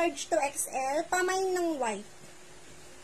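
A young woman speaks animatedly close by.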